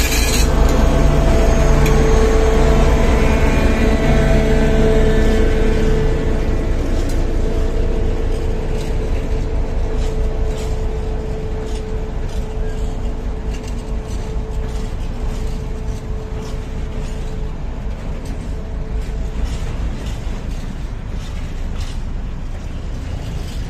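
Freight wagons clatter and rumble over the rails.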